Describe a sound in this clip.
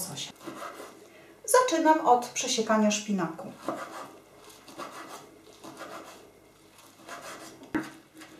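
A knife chops rapidly on a wooden board.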